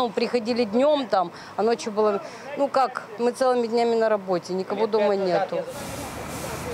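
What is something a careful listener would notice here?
A middle-aged woman speaks close to a microphone.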